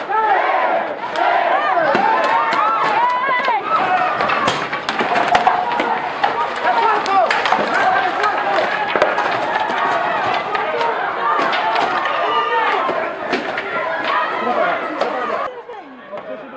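A crowd shouts and screams in panic close by.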